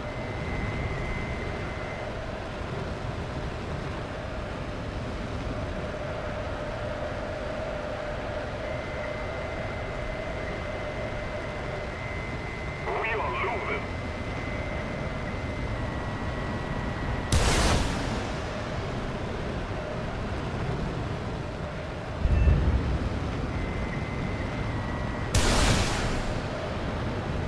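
A jet engine roars steadily throughout.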